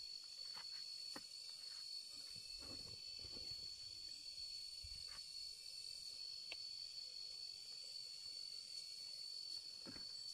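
Cloth rustles as a man pulls on a shirt.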